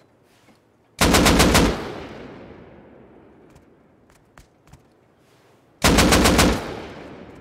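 A rifle fires rapid bursts with a loud echo.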